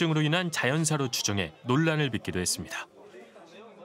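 A middle-aged man talks on a phone.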